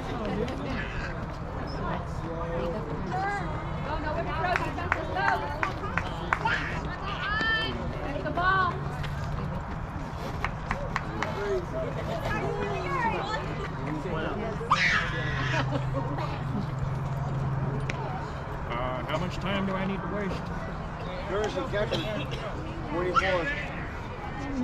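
Young women shout and cheer across an open field.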